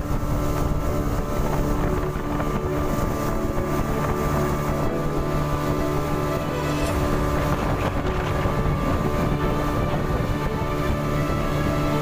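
Water splashes against the hull of a moving boat.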